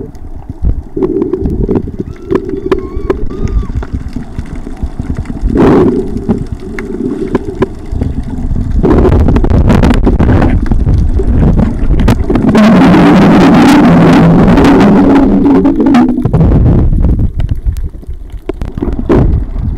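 Air bubbles gurgle and burble underwater.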